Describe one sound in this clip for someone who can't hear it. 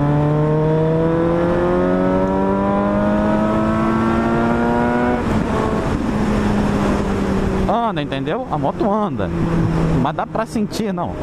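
A motorcycle engine revs up through the gears, then rises and falls in pitch as the throttle changes.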